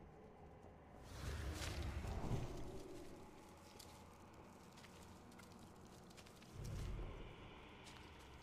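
A magic spell whooshes and booms loudly.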